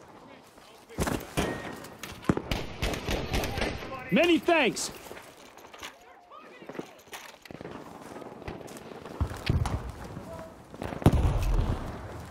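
A rifle fires sharp, loud shots.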